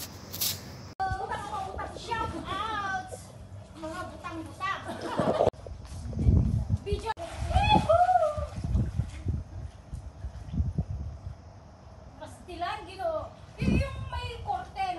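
Water splashes loudly in a pool.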